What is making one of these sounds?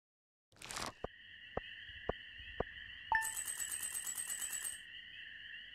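Short electronic ticks sound in quick succession as a game tallies points.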